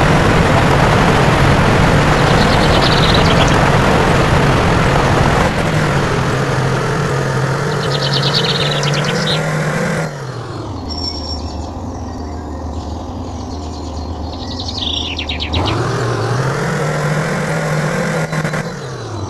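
A truck engine rumbles and strains as it climbs.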